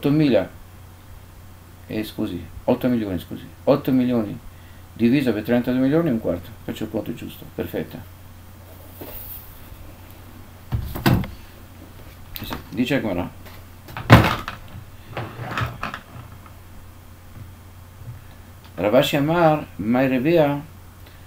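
An elderly man speaks calmly and close to a microphone, in short phrases with pauses.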